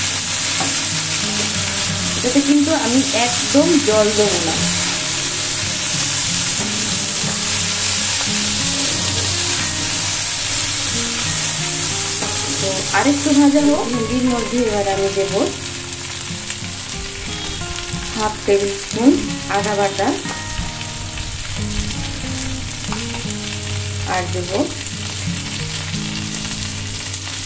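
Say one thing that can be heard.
Vegetables sizzle in hot oil in a pan.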